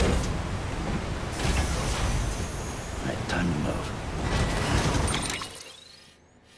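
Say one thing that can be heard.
A truck engine rumbles as the truck drives off.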